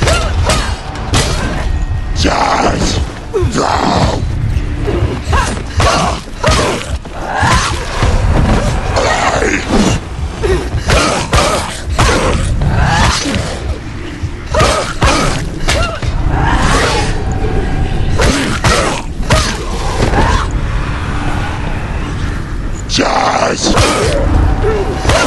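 Blades swish and clash in a fast fight.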